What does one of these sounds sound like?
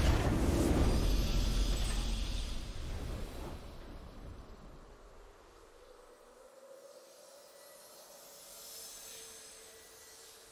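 A triumphant fanfare swells and slowly fades.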